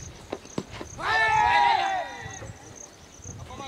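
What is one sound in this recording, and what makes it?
A man shouts loudly across an open field.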